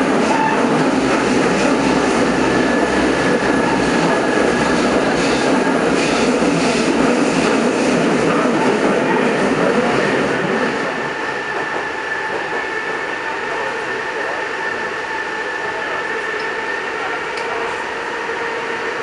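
A subway train rumbles and rattles along the tracks, then quietens as it slows.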